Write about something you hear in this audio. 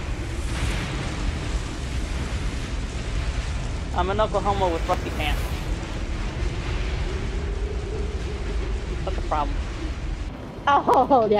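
A tornado roars with a deep, steady rumble of wind.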